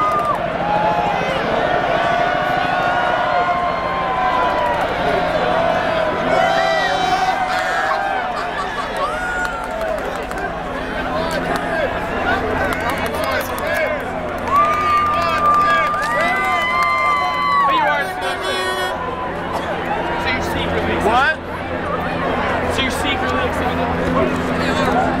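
A large crowd cheers and chants outdoors.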